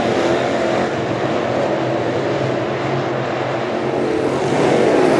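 Race car engines roar loudly, close by.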